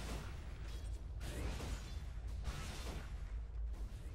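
Game fire spells whoosh and crackle during a fight.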